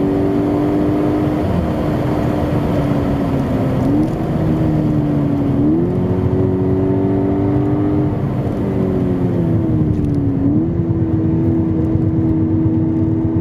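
Tyres roar on smooth tarmac.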